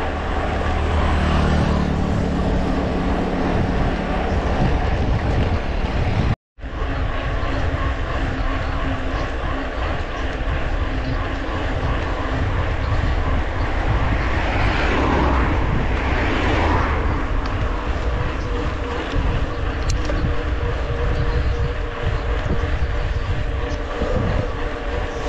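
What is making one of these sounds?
Wind buffets loudly and steadily, as on a moving bicycle.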